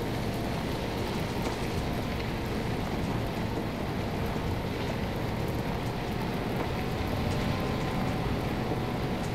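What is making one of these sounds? A vehicle engine rumbles steadily as it drives over rough ground.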